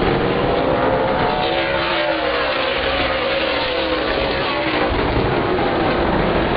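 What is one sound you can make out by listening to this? Race car engines roar loudly, rising and falling in pitch as cars speed past.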